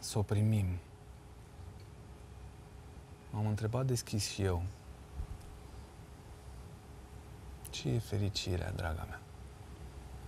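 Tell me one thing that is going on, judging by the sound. A man speaks in short, hesitant bursts close to a microphone.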